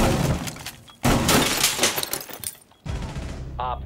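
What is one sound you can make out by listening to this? An explosion booms and debris clatters.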